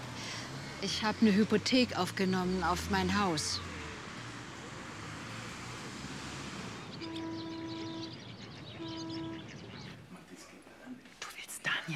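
A second elderly woman answers quietly, close by.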